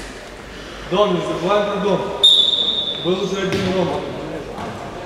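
Men shout to each other across the hall.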